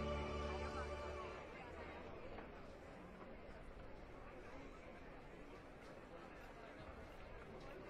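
A crowd of men and women chatter close by.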